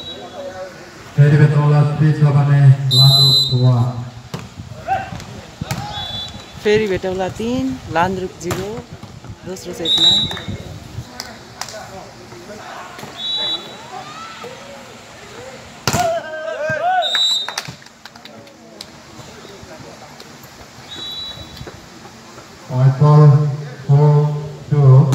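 Young men shout and call out during play outdoors.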